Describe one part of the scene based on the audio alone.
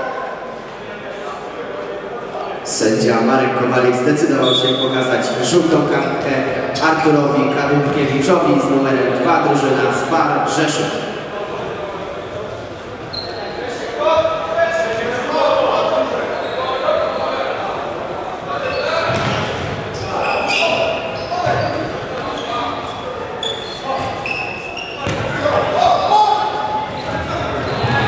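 A ball thuds as players kick it in a large echoing hall.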